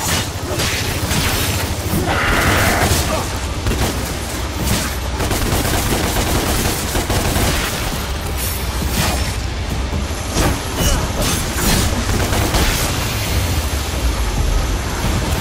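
Heavy gears grind and clank steadily.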